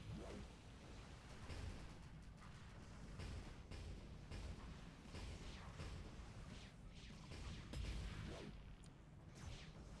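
Sci-fi energy weapons fire in bursts.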